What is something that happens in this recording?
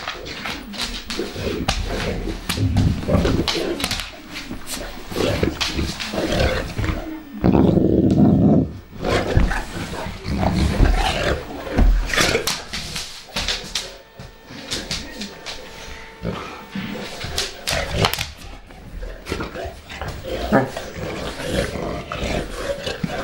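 Two large dogs growl playfully close by.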